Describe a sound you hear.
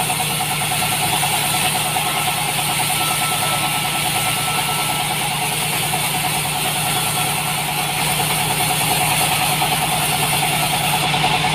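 A band saw cuts steadily through a log with a loud whine.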